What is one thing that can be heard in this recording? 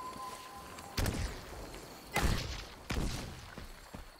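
Energy weapons blast in short bursts.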